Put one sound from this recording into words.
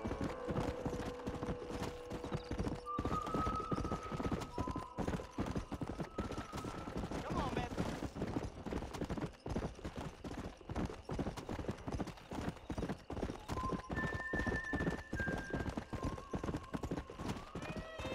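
Horse hooves clop steadily on a dirt trail.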